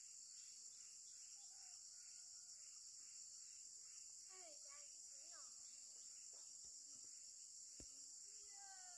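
Leaves rustle softly as a child picks plants.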